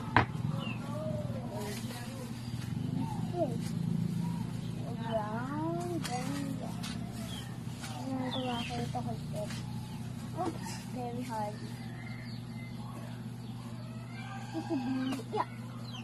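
A young child talks and babbles playfully close by.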